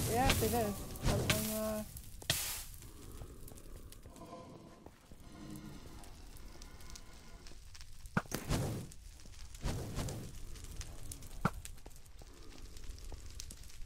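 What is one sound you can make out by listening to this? Fire crackles and roars close by.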